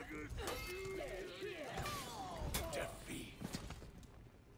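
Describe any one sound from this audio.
Metal blades clash and clang in a fight.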